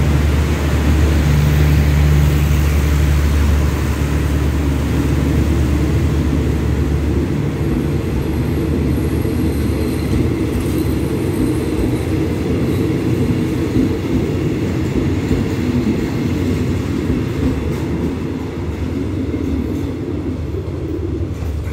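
Train carriages roll past with a low rattling clatter.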